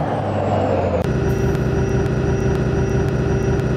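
A bus engine idles with a steady drone.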